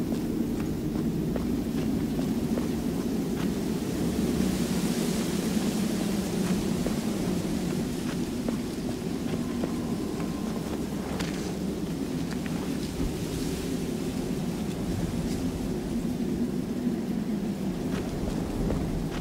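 Footsteps crunch softly through tall grass.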